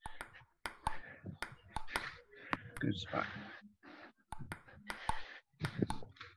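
A ping pong ball bounces on a table with light taps.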